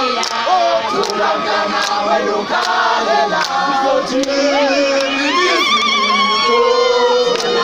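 Hands clap in a steady rhythm.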